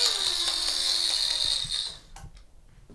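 A small toy motor whirs loudly with a hissing spray, then stops.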